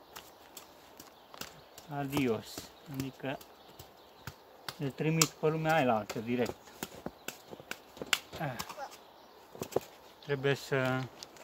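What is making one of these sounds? Wooden hive parts click and knock softly as they are handled.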